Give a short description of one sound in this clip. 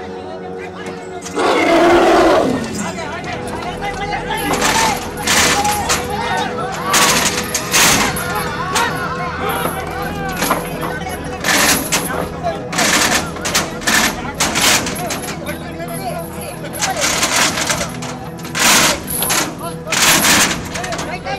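A crowd of men shout and call out nearby.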